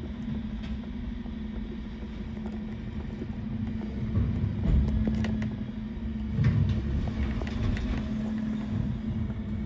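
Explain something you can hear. A garbage truck engine hums steadily nearby.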